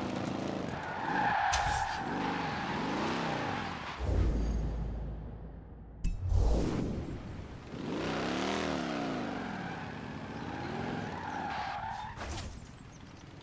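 Tyres screech as a car slides.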